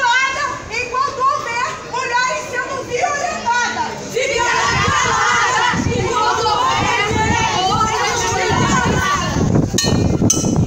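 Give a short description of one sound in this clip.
A young woman declaims loudly and with feeling in the open air.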